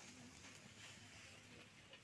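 A cow rustles dry hay close by.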